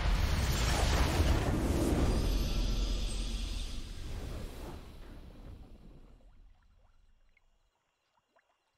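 A triumphant game fanfare booms loudly and slowly fades away.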